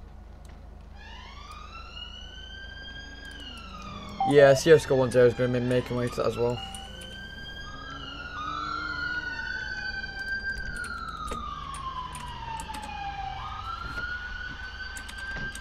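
A siren wails nearby, rising and falling.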